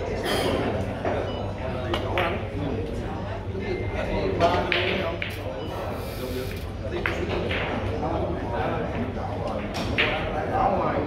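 Billiard balls clack sharply against each other.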